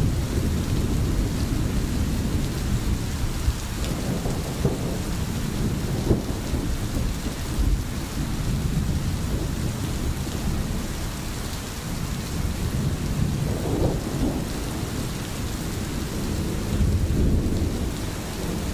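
A stream flows and gurgles steadily close by.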